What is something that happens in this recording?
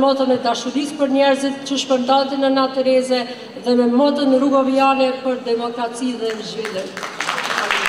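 A woman speaks steadily into a microphone in a large hall.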